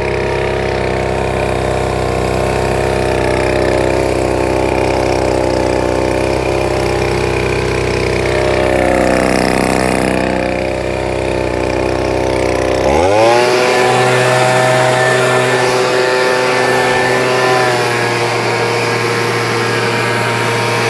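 A leaf blower engine drones steadily close by, then revs up to a higher pitch.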